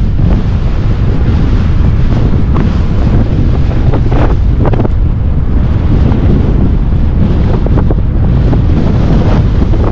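Bicycle tyres roll steadily over a paved path.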